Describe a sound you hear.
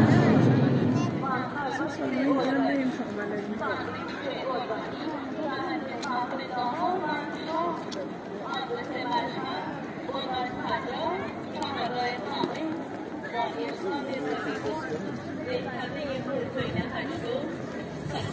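People chatter and call out nearby outdoors.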